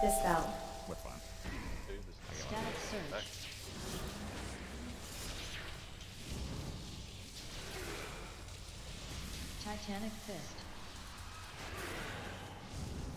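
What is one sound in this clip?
Spell effects crackle and whoosh in a fast game battle.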